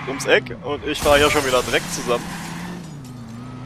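A car crashes into a metal object with a loud bang.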